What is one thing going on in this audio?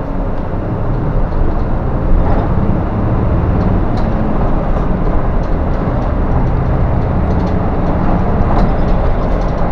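Tyres roar on the road, echoing loudly inside a tunnel.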